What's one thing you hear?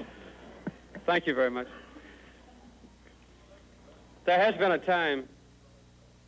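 An older man speaks into a microphone.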